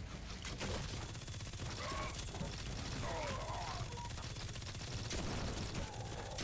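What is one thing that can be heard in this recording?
A weapon fires in rapid bursts.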